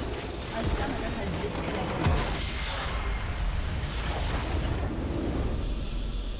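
Magic blasts and impacts crash in a game battle.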